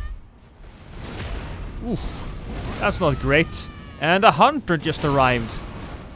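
Magic spells burst and crackle loudly.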